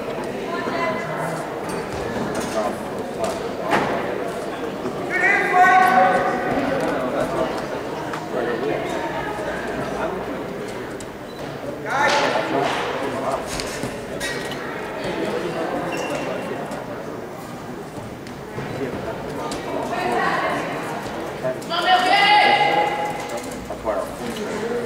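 Men shout encouragement loudly in an echoing hall.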